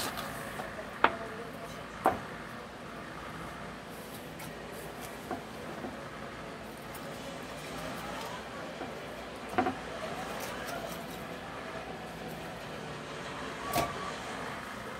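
Sharp knocks sound on a plastic cutting board now and then.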